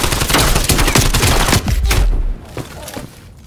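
A gun fires in rapid, loud bursts close by.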